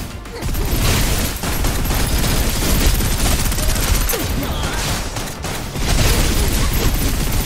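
Gunfire and energy blasts crackle and boom in rapid bursts.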